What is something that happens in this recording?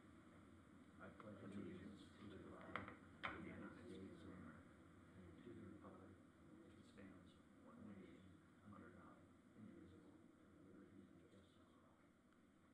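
A group of adults recite together in unison.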